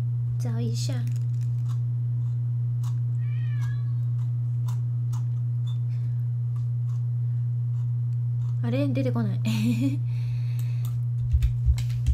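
A young woman chews and bites into soft pastry close to a microphone.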